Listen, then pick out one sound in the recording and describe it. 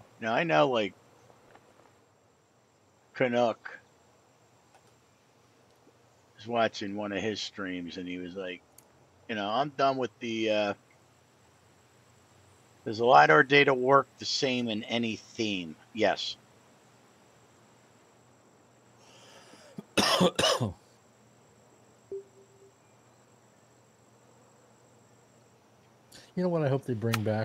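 A middle-aged man talks casually into a headset microphone, in short bursts with pauses.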